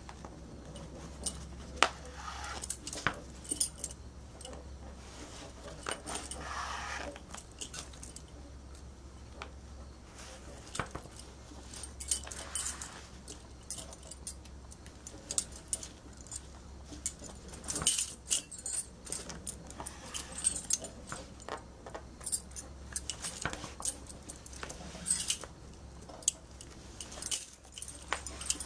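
Metal bangles clink and jingle against each other.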